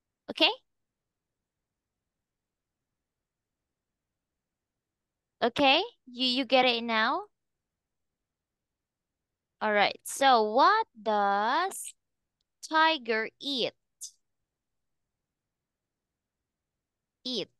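A young woman speaks slowly and clearly over an online call, as if teaching.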